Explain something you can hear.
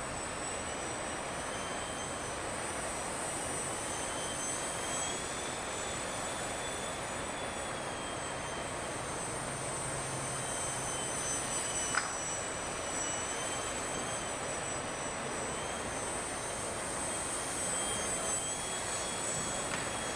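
A small drone buzzes overhead with a high whine that rises and falls in pitch.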